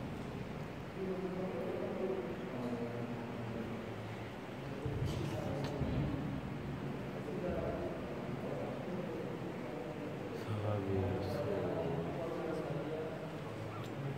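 A man speaks softly close by.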